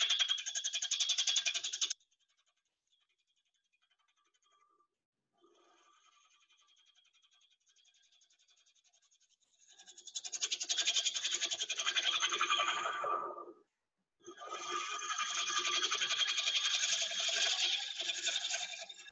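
A wood lathe whirs as a gouge scrapes and shaves spinning wood in loud bursts.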